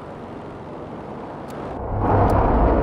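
A propeller plane engine drones.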